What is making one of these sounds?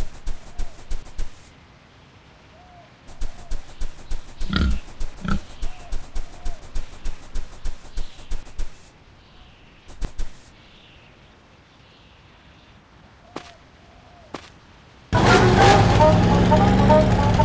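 Pigs grunt softly.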